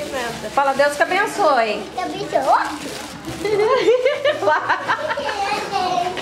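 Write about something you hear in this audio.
Young children chatter close by.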